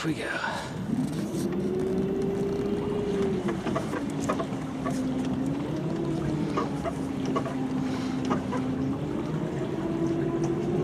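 A boat engine hums steadily, its pitch shifting slightly.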